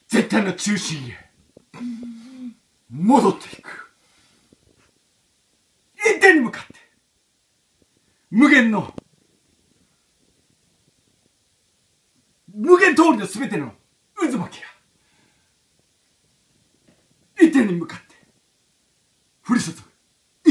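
A man chants loudly in short, sliding bursts with pauses between them.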